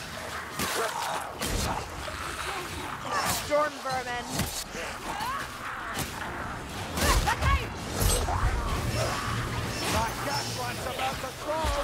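Creatures shriek and snarl as they are cut down.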